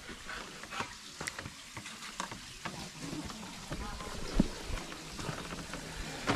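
Wooden poles knock and creak.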